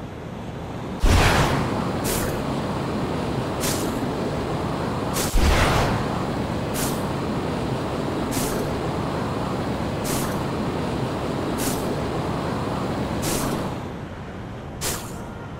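Web lines shoot out with sharp, swishing whooshes again and again.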